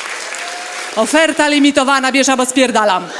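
A young woman speaks with animation into a microphone in a large hall.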